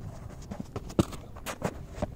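A cricket bat hits a ball with a sharp crack.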